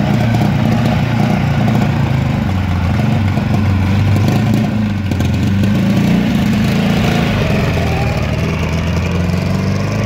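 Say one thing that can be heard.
A small car engine idles with a rough, rattling hum.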